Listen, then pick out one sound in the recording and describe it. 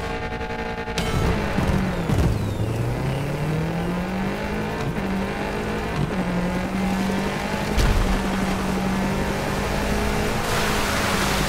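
A rally car engine accelerates hard through the gears.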